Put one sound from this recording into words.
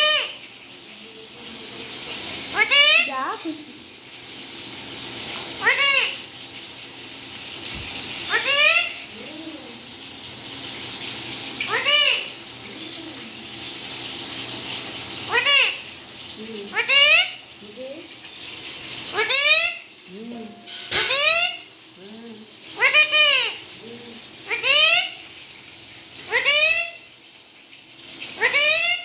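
A parrot squawks loudly and repeatedly, close by.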